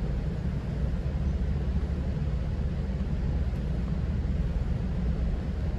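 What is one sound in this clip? A car's engine and tyres rumble low and steady from inside the car.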